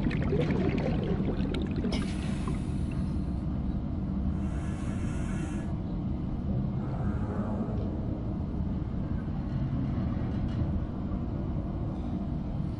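A deep underwater rumble hums steadily.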